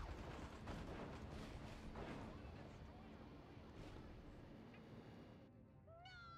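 Explosions boom and crackle in rapid succession.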